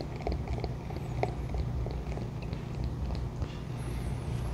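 Beer pours and fizzes into a glass.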